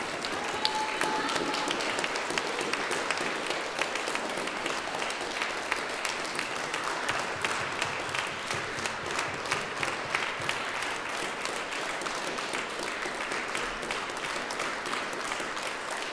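An audience applauds in a large echoing hall.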